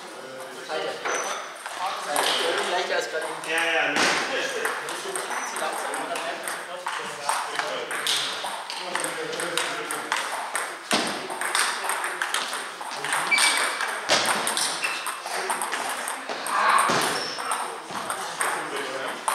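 Men talk nearby in an echoing hall.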